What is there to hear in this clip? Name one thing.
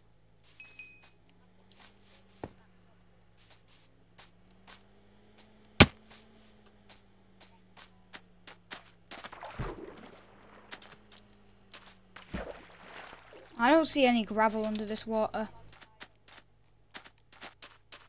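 Footsteps thud softly on grass and sand.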